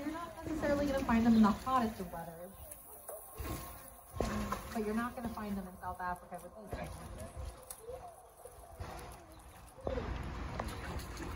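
Water splashes as penguins swim.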